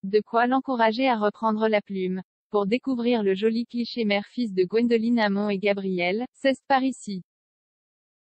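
A woman reads out calmly, close to a microphone.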